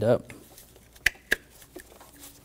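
Plastic engine parts click as they are pressed into place.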